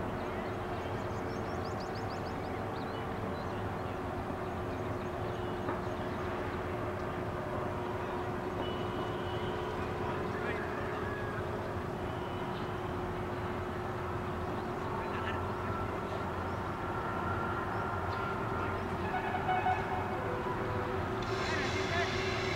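Men call out and talk far off in an open outdoor space.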